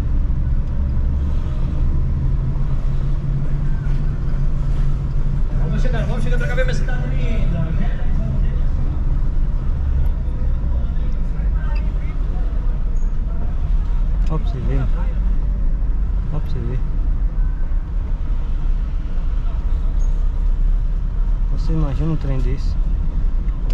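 A car engine hums steadily with a low rumble while driving.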